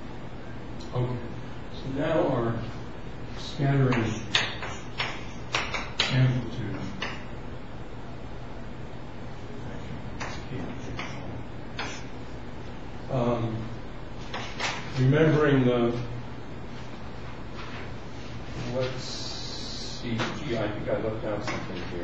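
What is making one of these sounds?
An elderly man speaks calmly.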